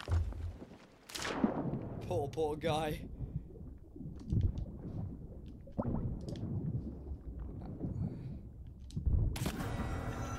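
Water gurgles and bubbles under the surface.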